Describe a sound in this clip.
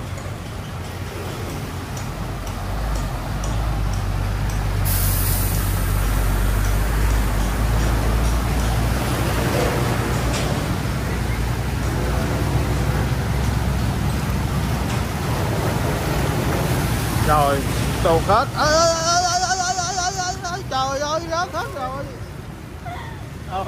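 Motorbike engines hum as the bikes ride through deep water.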